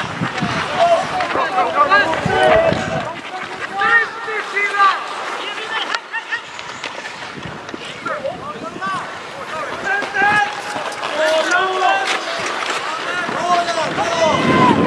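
Ice skates scrape and hiss across ice.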